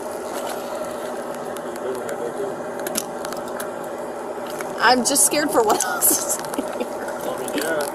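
Keys jingle on a ring.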